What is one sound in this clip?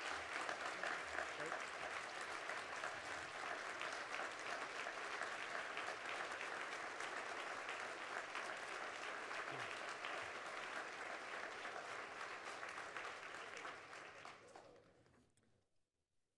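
An audience claps and applauds loudly, then the applause dies away.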